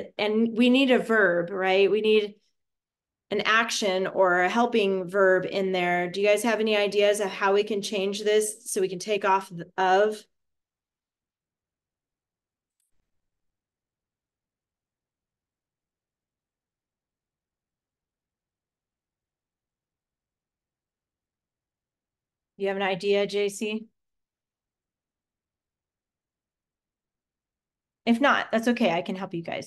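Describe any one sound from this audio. A woman speaks calmly and clearly over an online call.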